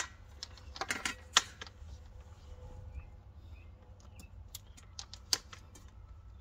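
Cable connectors click and clack as they are plugged together.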